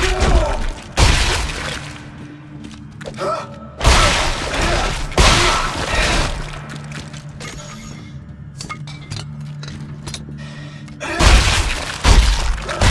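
Heavy boots stomp down with loud thuds.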